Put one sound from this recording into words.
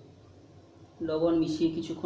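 A man speaks nearby in a calm voice.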